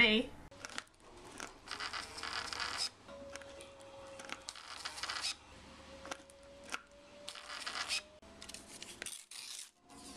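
A small printer whirs as it feeds out paper.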